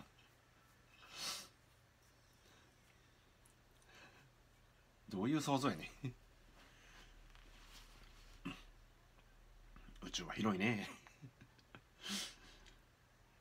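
A man laughs close to a microphone.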